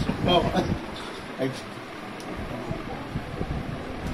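An elderly man laughs warmly close by.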